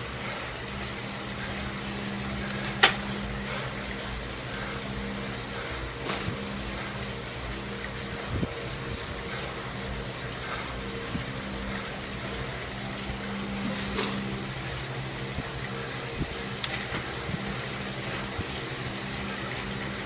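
An indoor bike trainer hums steadily as a man pedals.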